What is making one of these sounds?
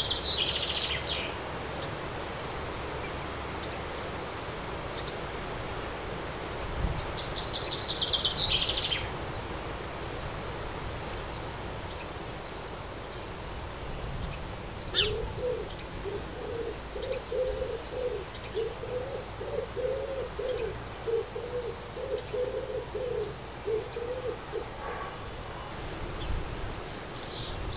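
A small bird chirps and twitters in short bursts outdoors.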